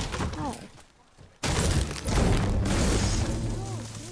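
A pickaxe strikes wood with heavy thuds.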